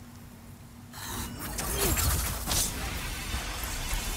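A large winged creature swoops overhead with a rushing whoosh.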